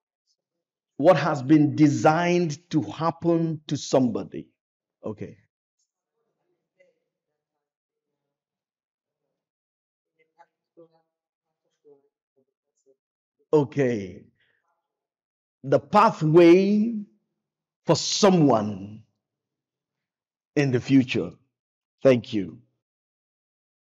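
A man preaches with animation through a microphone, in bursts with long pauses.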